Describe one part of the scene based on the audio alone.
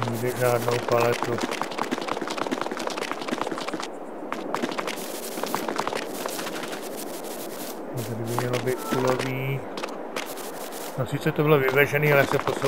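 Footsteps tap steadily on stone paving.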